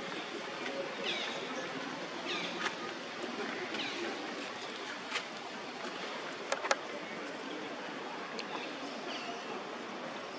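Baby monkeys squeak softly.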